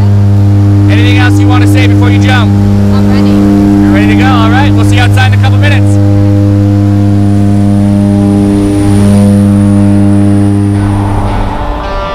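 An aircraft engine drones loudly and steadily inside a cabin.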